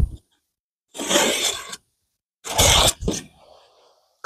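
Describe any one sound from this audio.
A pencil scratches along a metal ruler.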